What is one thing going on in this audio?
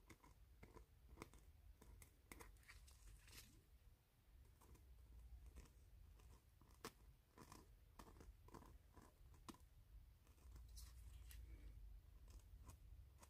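Rubber gloves rustle and creak as fingers handle a resin piece.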